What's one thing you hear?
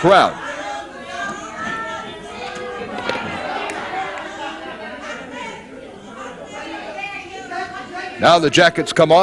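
A crowd chatters and murmurs around a wrestling ring.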